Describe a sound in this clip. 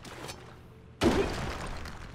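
A sword strikes something with a sharp, loud impact.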